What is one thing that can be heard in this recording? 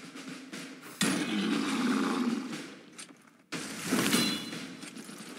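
Monsters growl and screech as they are struck.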